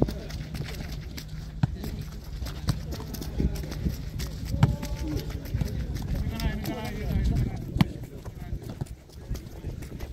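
Feet step and shuffle on grass.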